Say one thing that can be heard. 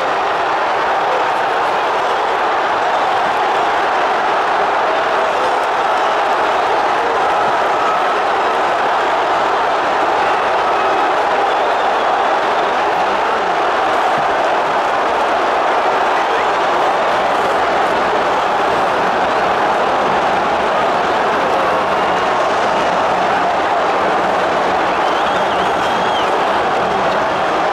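A huge stadium crowd cheers and roars loudly without pause.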